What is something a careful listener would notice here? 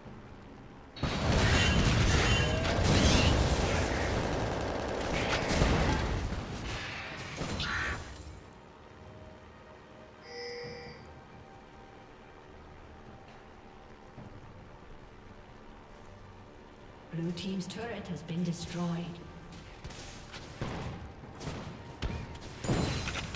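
Game spell effects burst and clash in a fight.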